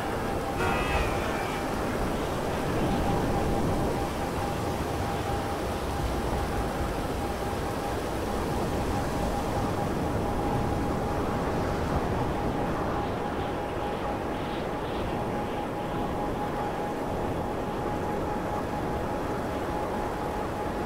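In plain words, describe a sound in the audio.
Wind rushes past in the open air.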